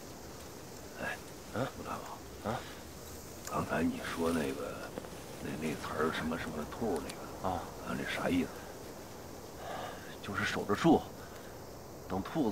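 A man speaks quietly and urgently up close.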